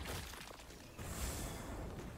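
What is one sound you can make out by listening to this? A magic spell bursts with a rushing whoosh.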